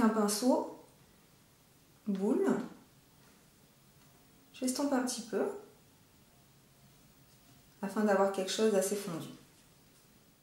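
A woman speaks calmly and close to a microphone, in short phrases.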